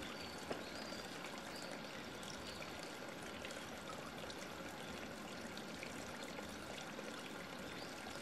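Water ripples and trickles steadily.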